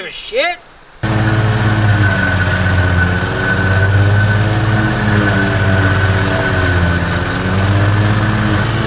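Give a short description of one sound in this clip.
A riding mower's engine drones steadily as it drives through snow.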